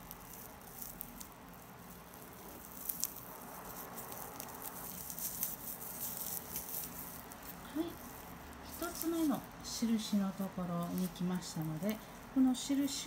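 Stiff raffia yarn rustles and crackles as a crochet hook pulls it through stitches.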